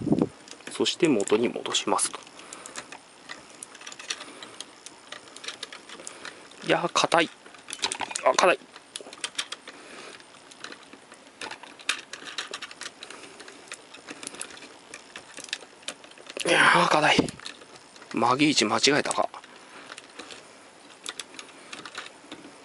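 Plastic parts of a toy click and creak as hands move them.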